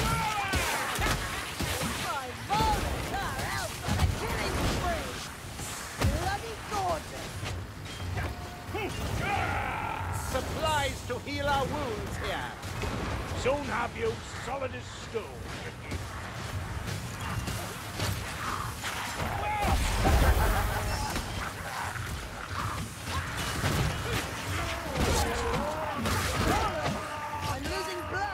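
Blades clang and thud against bodies.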